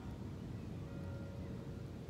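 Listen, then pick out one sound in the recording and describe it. A woman gulps a drink from a bottle.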